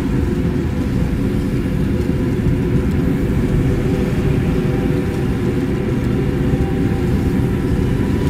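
A deep magical hum drones steadily.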